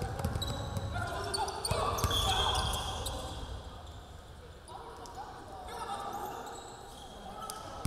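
Sounds echo in a large indoor hall.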